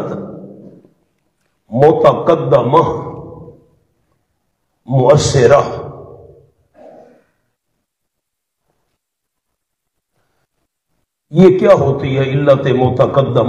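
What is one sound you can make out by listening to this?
A man speaks emphatically into a microphone, in bursts with long pauses.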